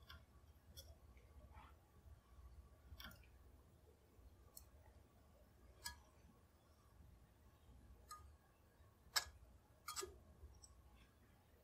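A metal die creaks and clicks as it is turned to cut a thread on a rod.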